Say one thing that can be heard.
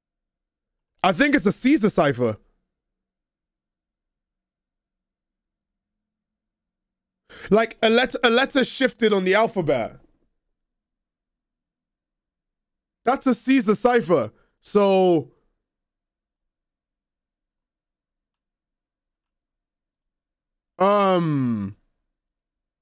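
A young man speaks into a close microphone in short bursts, with animation.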